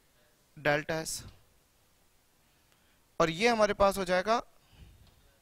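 A man speaks calmly into a headset microphone, in short bursts.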